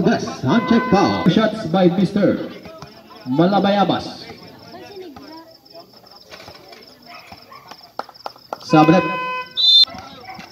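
Men shout and cheer loudly outdoors.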